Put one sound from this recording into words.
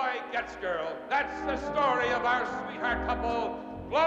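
A middle-aged man announces loudly through a microphone and loudspeakers.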